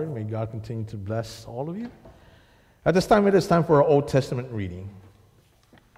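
A man speaks through a microphone into a large echoing hall.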